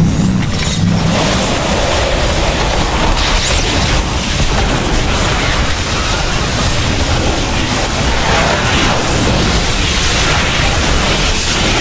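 Laser blasts and explosions crackle in a space battle.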